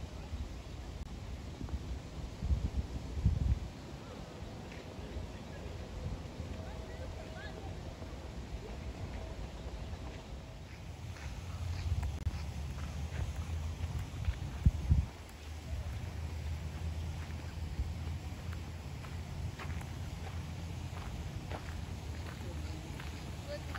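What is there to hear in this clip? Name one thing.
Wind blows across the open air outdoors.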